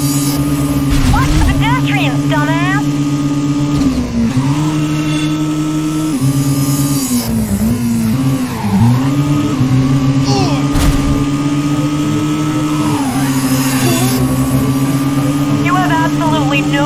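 Tyres squeal on the road.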